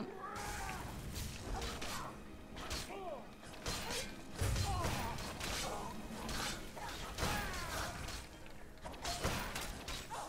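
Magic spells crackle and hiss during a fight.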